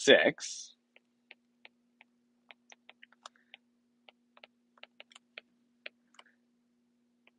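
A stylus taps and scratches lightly on a tablet.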